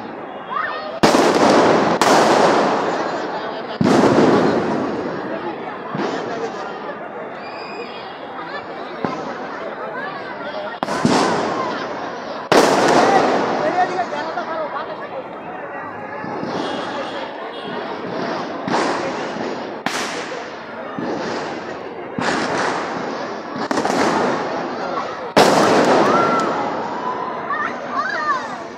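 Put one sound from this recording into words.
Fireworks burst with loud booming bangs that echo between buildings.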